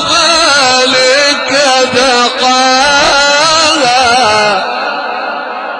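A man chants loudly in a long, wavering melody through a microphone and loudspeakers, then stops and the sound echoes away.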